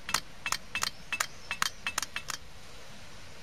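Fingers tap against a plastic funnel.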